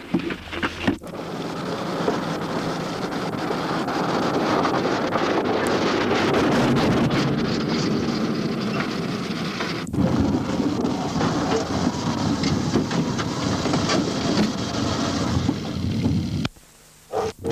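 A car engine roars as the car drives over a dirt track.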